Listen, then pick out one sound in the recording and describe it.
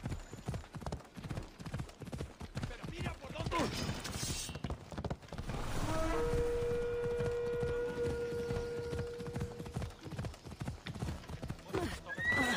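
Hooves gallop steadily on a dirt track.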